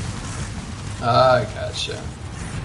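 A large monster roars.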